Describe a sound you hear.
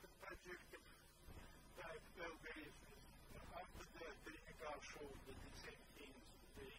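A man lectures calmly through a microphone in a large room.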